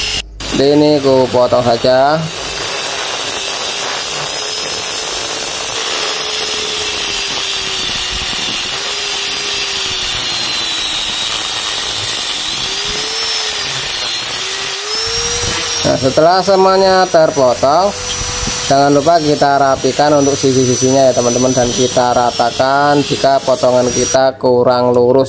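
An angle grinder whines steadily as it cuts through metal.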